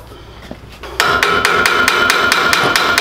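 A ratchet wrench clicks rapidly.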